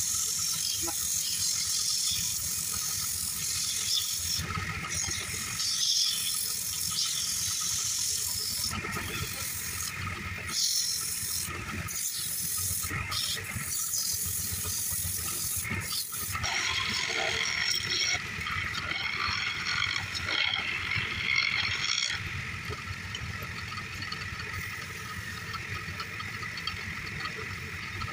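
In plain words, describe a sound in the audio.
Sandpaper rasps against spinning wood.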